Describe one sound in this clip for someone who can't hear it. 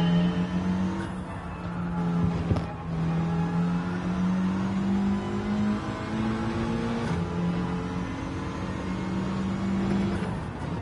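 A racing car engine roars steadily, rising in pitch and dropping at each gear change.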